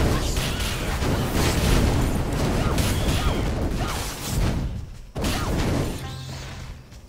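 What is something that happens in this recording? Loud fiery spell blasts crackle and roar in a game.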